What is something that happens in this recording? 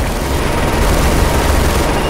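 A heavy machine gun fires a rapid burst.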